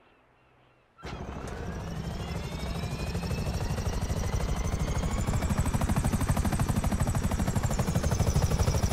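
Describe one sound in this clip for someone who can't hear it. A helicopter engine whines and its rotor thumps as it takes off and flies.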